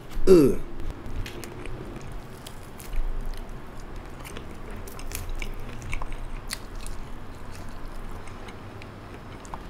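Crispy fried chicken crunches and tears between fingers.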